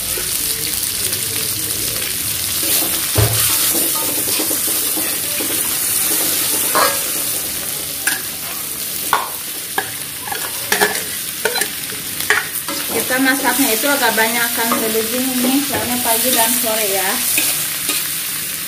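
A metal spatula scrapes and clanks against a pan.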